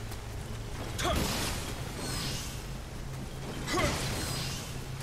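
A sword swishes and strikes in quick blows.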